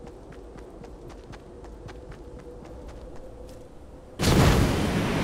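Footsteps patter on grass.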